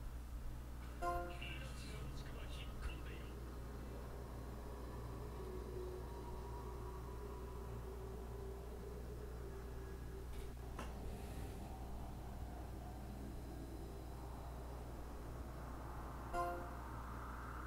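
A game chimes with short bright tones.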